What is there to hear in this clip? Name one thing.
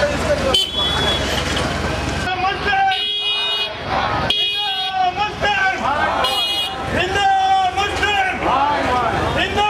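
A man shouts slogans close by.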